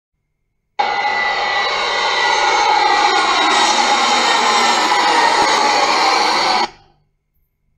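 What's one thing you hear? A jet airliner roars loudly overhead as it passes low, its engine whine falling in pitch.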